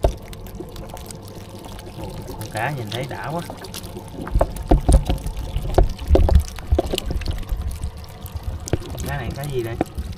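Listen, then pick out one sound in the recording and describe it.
Wet fish slither and slap as a hand stirs through a heap of them.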